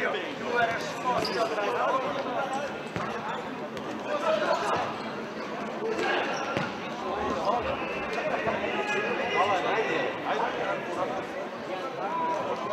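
Men shout and call out across a large echoing hall.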